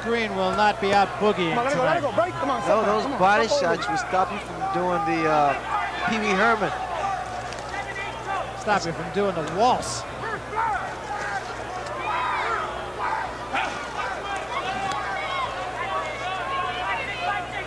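A crowd murmurs in a large arena.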